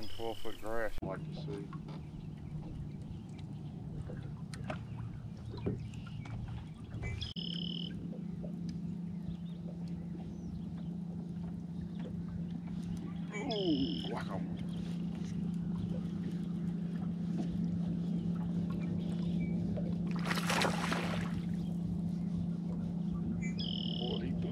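An electric boat motor hums steadily.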